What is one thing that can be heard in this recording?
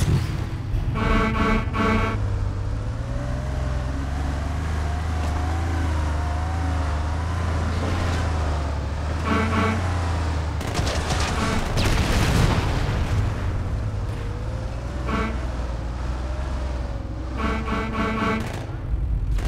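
A mounted machine gun fires rapid bursts.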